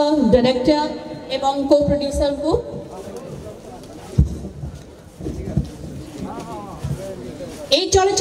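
A woman speaks through a microphone and loudspeakers, in a lively, announcing tone.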